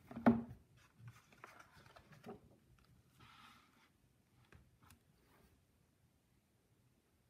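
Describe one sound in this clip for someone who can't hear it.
Paper pages rustle as a page of a book is turned.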